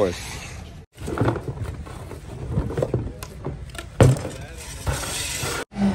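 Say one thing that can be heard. Trash clatters and rustles.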